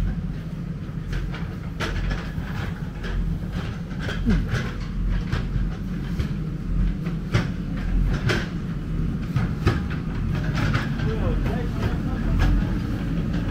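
A backhoe loader's diesel engine rumbles steadily nearby.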